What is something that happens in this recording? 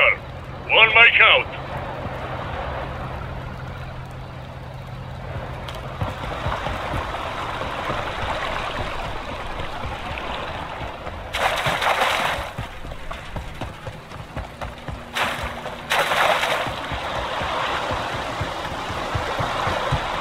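Water roars down a dam spillway in the distance.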